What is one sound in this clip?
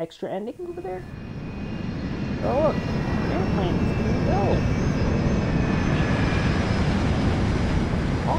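A jet airliner's engines roar loudly and steadily.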